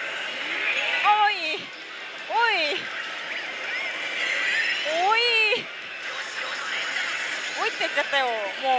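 A slot machine plays electronic jingles and sound effects.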